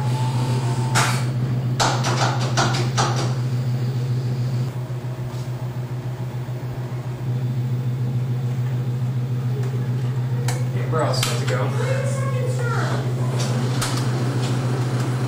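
Switches click sharply several times.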